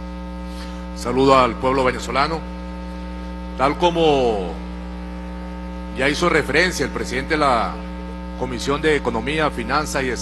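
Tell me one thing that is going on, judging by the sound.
A man speaks into a microphone with animation, heard through loudspeakers in a large hall.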